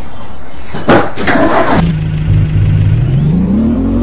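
A bus engine hums and revs up.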